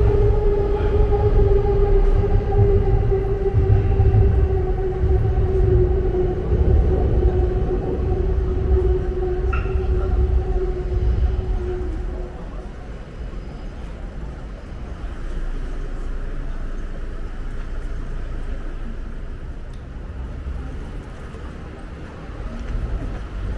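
Traffic rumbles steadily along a nearby street.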